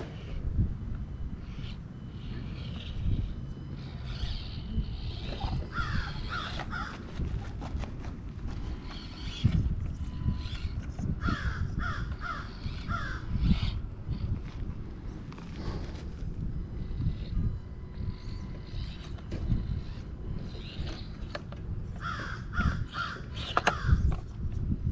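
Plastic tyres scrape and knock on stone.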